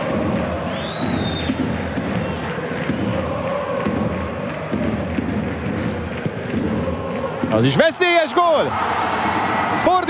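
A large stadium crowd chants and roars steadily outdoors.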